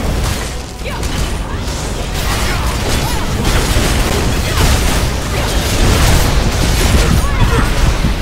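Spell effects crackle and whoosh during a fight.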